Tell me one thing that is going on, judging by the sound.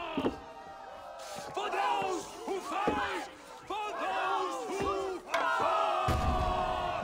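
A group of men chant together loudly in a large hall.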